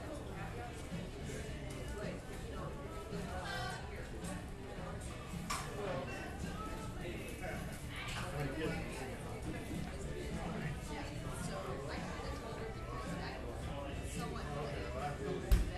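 A crowd of men and women chatter indistinctly indoors.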